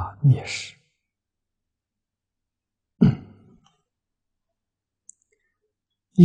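An elderly man speaks calmly and slowly, with long pauses, close to a microphone.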